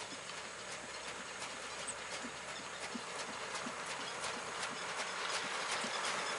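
A horse's hooves thud steadily on soft sand.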